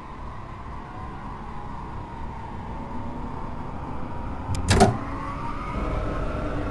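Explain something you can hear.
An electric train motor hums and whines as the train speeds up.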